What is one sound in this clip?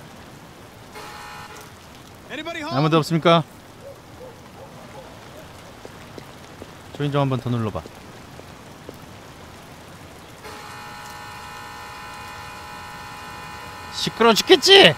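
A doorbell chimes with a steady electronic tone.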